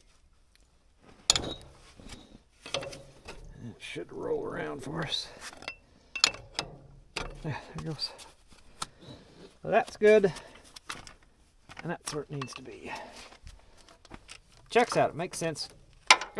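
Metal tools clank against an engine.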